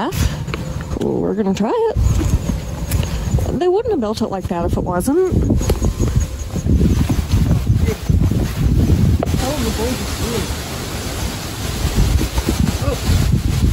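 Footsteps scuff along a stone path outdoors.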